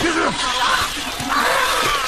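A man screams in terror.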